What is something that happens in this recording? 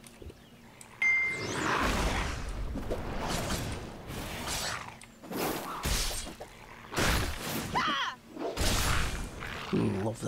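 Weapons swing and strike with sharp whooshes and thuds.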